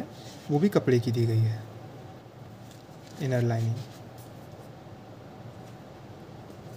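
Hands handle a leather boot with soft rustling.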